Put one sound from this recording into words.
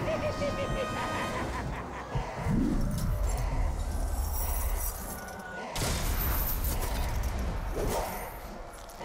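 Metal blades clash and strike in a fight.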